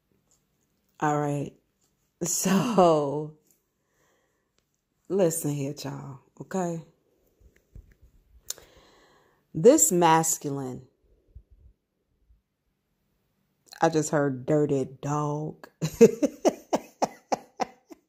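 A woman speaks slowly and calmly, close to a microphone, with long pauses.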